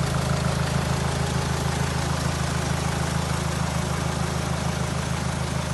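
A car engine idles with a steady, rumbling throb.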